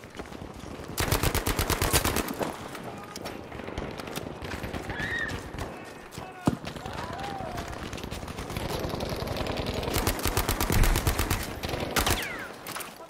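A submachine gun fires in rapid bursts close by.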